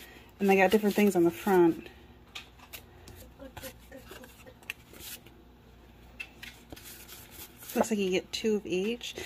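Paper cards rustle and slide as they are handled.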